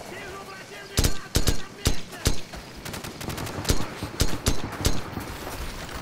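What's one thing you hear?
A rifle fires sharp single shots nearby.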